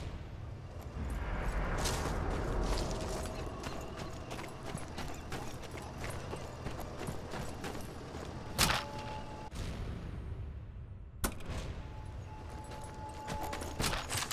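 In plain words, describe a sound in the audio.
Footsteps crunch quickly on snow and gravel.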